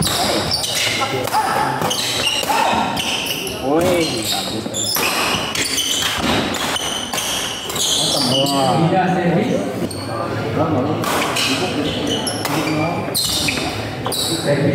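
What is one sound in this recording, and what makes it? Badminton rackets strike a shuttlecock again and again in an echoing hall.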